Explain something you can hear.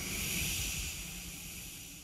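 A woman sings softly into a microphone.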